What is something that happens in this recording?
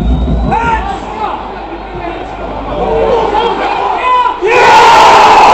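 A stadium crowd chants and sings loudly.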